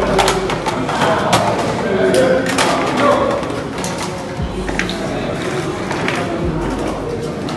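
Small cartridges clink onto a table.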